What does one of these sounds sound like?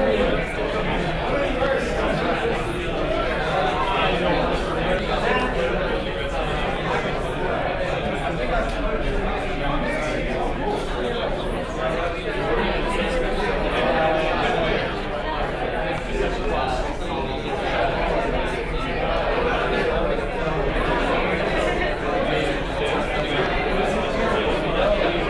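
Many people chatter at once in a large room.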